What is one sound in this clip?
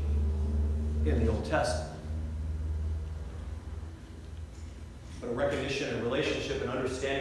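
An elderly man speaks calmly through a microphone in a large echoing room.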